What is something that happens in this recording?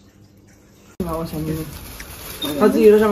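Women talk in a busy shop.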